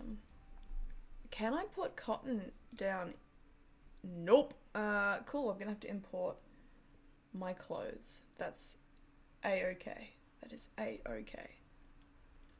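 A young woman talks casually into a close microphone, in short bursts.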